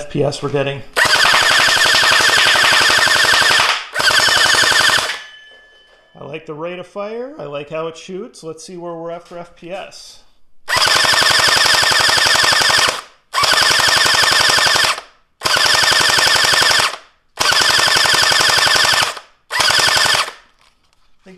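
A toy blaster whirs loudly and fires darts in rapid bursts.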